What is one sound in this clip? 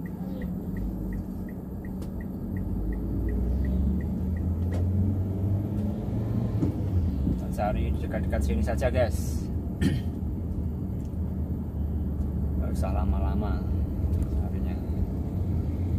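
A car engine hums low and steady from inside the car as it drives.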